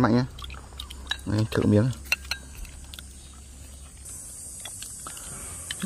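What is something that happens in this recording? Chopsticks click against bowls.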